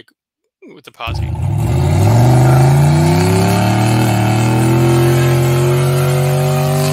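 A truck engine revs loudly and rumbles steadily.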